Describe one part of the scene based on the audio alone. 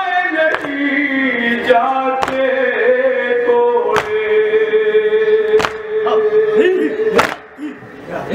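A man chants loudly and mournfully into a microphone.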